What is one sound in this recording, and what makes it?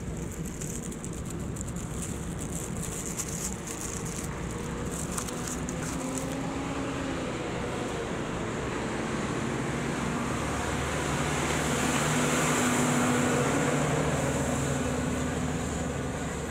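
Wind rushes steadily past, outdoors while cycling.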